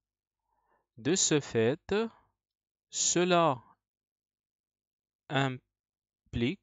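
A young man speaks calmly and closely into a headset microphone, in short phrases with pauses.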